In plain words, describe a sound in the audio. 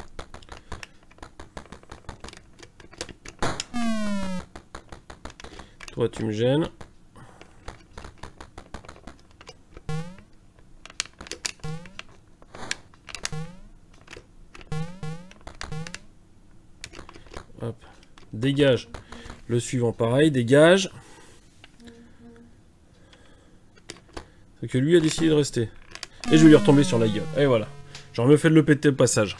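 Retro video game sound effects beep and blip.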